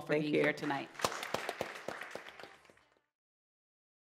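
A small audience claps.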